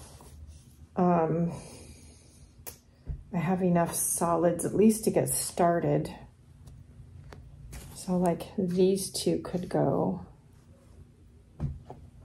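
Balls of yarn rustle as they are handled.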